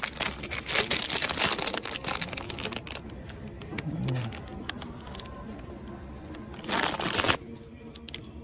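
A plastic bag crinkles and rustles in a hand.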